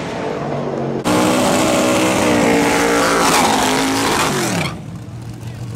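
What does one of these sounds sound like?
A drag car engine roars as the car launches at full throttle.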